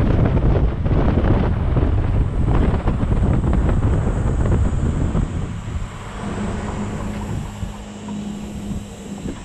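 A car's tyres roll over asphalt.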